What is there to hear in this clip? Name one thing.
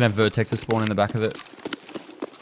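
A man speaks with animation, close into a headset microphone.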